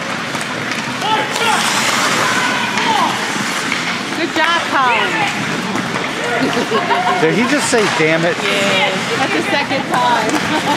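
Spectators shout and cheer in a large echoing rink.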